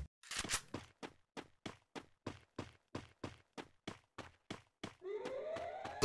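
Footsteps patter quickly and evenly on pavement.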